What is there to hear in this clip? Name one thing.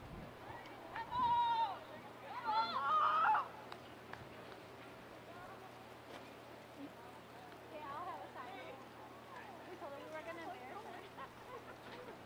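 Adult spectators close by shout and call out outdoors.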